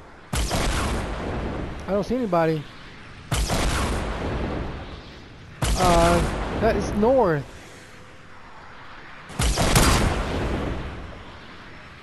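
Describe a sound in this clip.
Sniper rifle shots ring out loudly, echoing across open ground.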